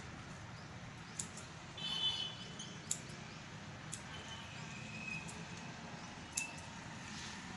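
Scissors snip through hair in short, crisp clicks.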